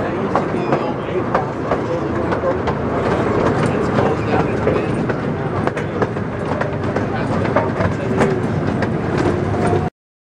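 An open vehicle rumbles along with a steady engine drone.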